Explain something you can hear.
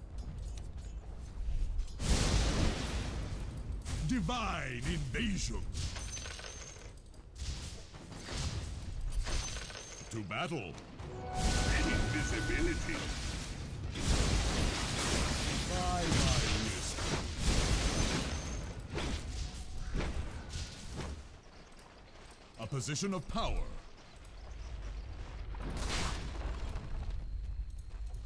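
Game battle sounds of spells and hits crash and whoosh.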